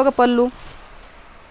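A woman speaks briefly and clearly, close by.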